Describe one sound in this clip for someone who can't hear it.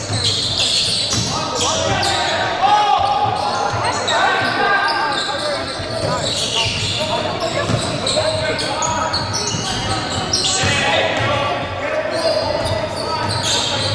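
Young men call out to each other across an echoing hall.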